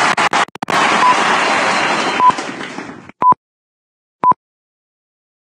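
Short electronic beeps count down, one each second.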